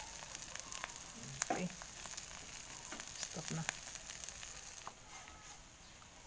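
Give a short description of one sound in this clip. A wooden spatula scrapes and stirs food in a frying pan.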